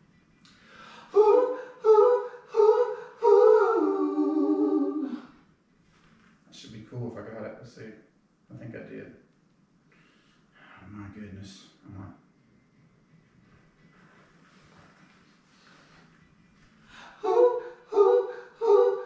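A man sings loudly into a close microphone in short held notes.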